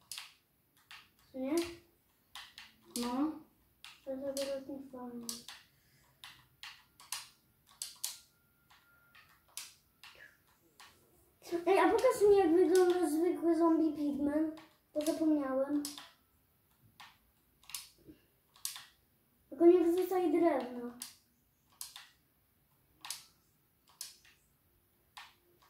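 Short soft clicks of a game menu sound again and again.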